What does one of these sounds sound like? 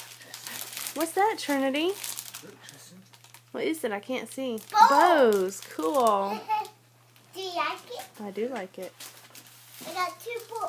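A young girl speaks excitedly, close by.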